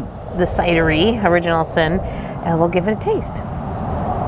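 A woman speaks with animation, close to a clip-on microphone.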